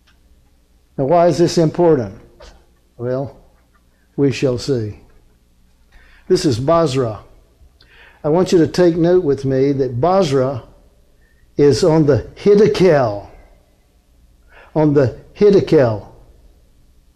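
A middle-aged man speaks slowly and calmly through a microphone, with pauses between phrases.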